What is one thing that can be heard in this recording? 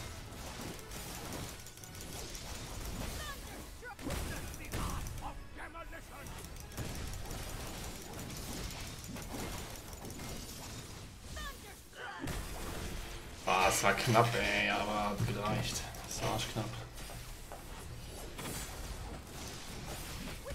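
Game battle effects clash and boom.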